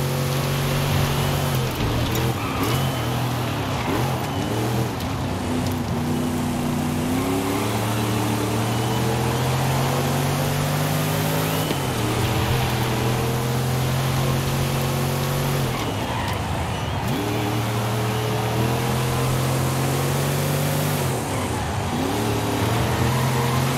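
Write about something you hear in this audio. A car engine roars loudly, revving up through the gears and dropping as it shifts.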